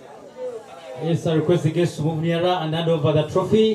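A group of young men sings loudly together.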